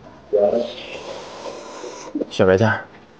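A man slurps noodles loudly up close.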